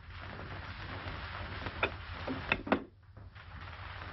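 A telephone handset clicks down into its cradle.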